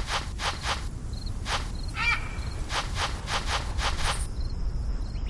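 Paws pound quickly over dry ground.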